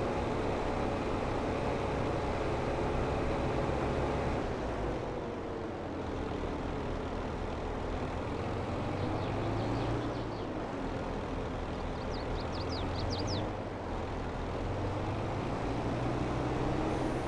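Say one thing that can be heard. A tractor engine rumbles steadily as it drives along.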